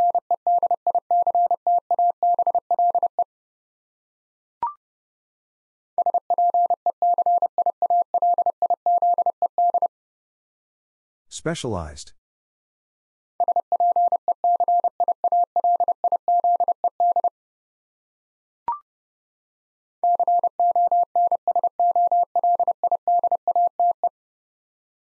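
A telegraph key taps out Morse code as rapid, steady beeps.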